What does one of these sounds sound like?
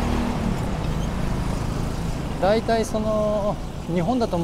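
Motorcycle engines buzz as motorcycles ride past.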